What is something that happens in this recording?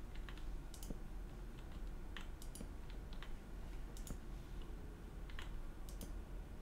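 A pickaxe chips at rock with quick repeated clicks.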